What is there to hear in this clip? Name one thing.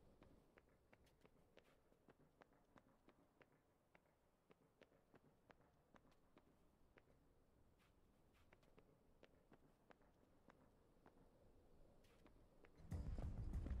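Footsteps tap on a hard stone floor in a large echoing hall.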